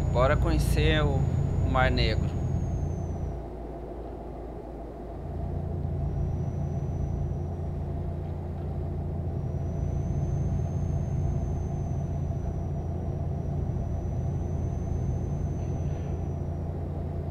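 A truck engine hums steadily, dipping briefly before rising again.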